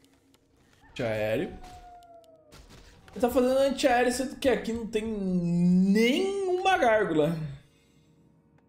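A young man exclaims loudly and in a drawn-out voice into a close microphone.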